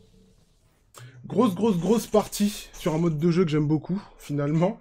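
A young man speaks animatedly into a close microphone.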